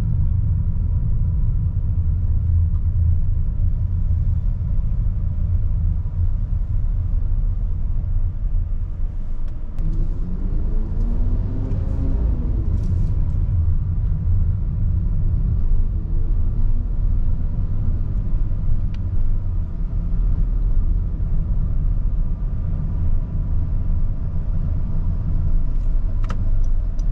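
Tyres roll on the road with a low rumble.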